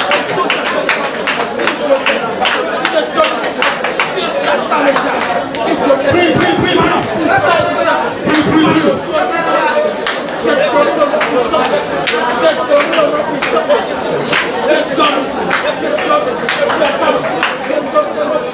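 A crowd of men and women sings together loudly.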